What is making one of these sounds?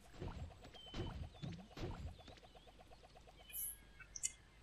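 Quick electronic ticks and chimes sound as a score tallies up.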